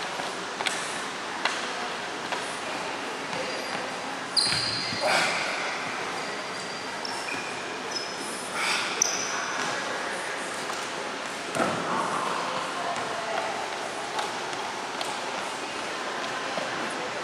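Sneakers squeak and tap on a wooden gym floor in a large echoing hall.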